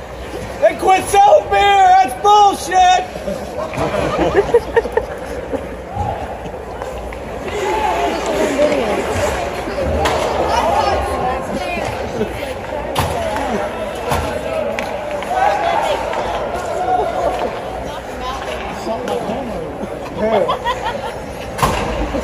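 A crowd of spectators chatters and calls out in a large echoing arena.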